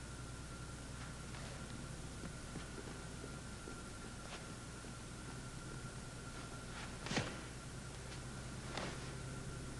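Bare feet thud and shuffle on a padded mat.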